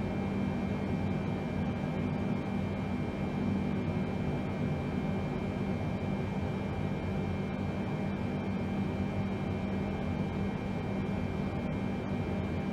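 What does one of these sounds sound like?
Aircraft engines hum in a low, steady drone, heard from inside the cockpit.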